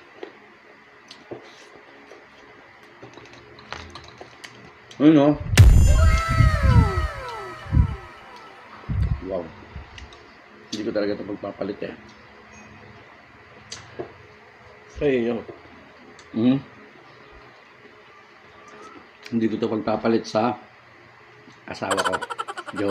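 A man chews and smacks his lips loudly.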